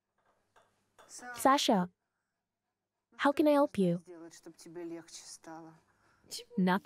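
An elderly woman speaks softly, close by.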